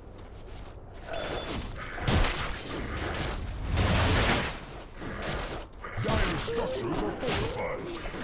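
Game combat sound effects crash and clang as a fight breaks out.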